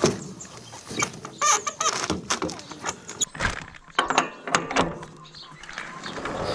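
A hand crank rattles and clanks against a small engine.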